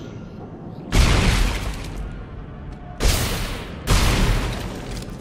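Loud energy gun blasts fire in bursts.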